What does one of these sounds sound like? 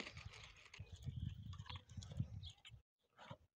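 A dog chews and laps food from a bowl.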